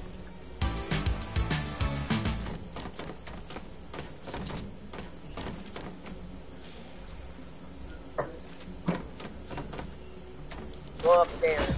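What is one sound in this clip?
Soft menu clicks tick repeatedly as items are scrolled through.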